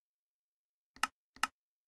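A menu button clicks.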